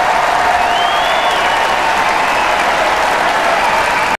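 A crowd claps steadily.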